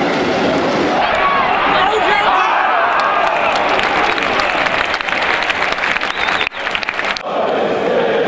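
A crowd of fans cheers and shouts nearby.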